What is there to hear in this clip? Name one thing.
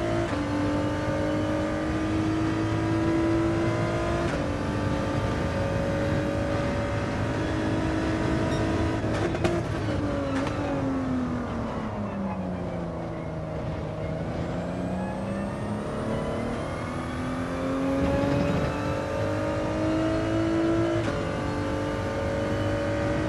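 A racing car engine roars at high revs, shifting gears, dropping low under braking and then climbing again.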